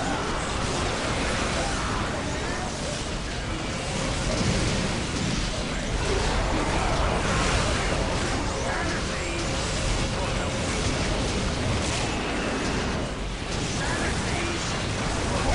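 Creatures roar and screech in combat.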